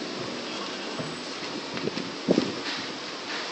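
A middle-aged man murmurs a few words quietly, close by.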